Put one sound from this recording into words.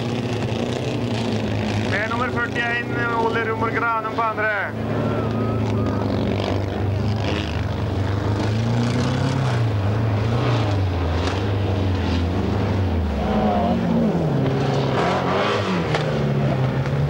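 Racing car engines roar and rev outdoors.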